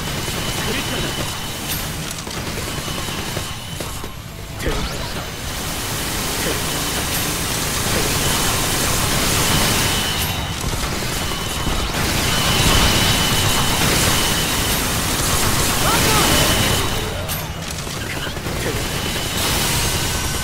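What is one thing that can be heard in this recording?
Game sword strikes and magic blasts crackle and whoosh.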